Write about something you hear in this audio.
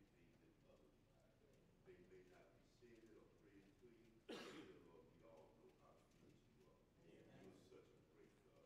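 An elderly man preaches with animation through a microphone in an echoing hall.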